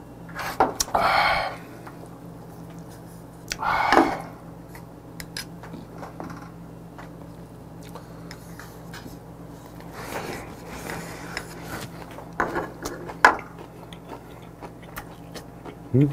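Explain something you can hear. Chopsticks clink against a small dish.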